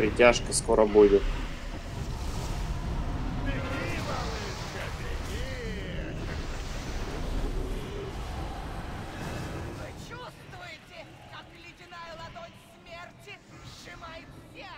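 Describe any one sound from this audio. Magic blasts whoosh and crackle in a game battle.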